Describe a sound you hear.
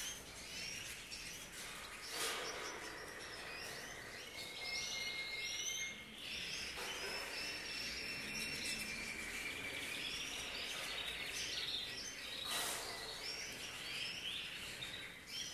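Many small caged birds chirp and sing nearby.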